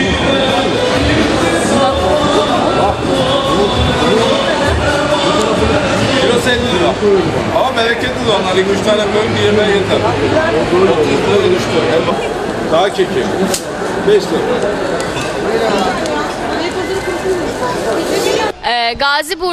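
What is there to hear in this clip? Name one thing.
A crowd chatters and murmurs in a busy market.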